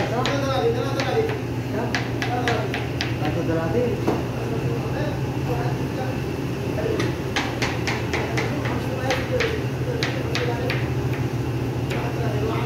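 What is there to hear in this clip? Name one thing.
An extractor fan hums steadily.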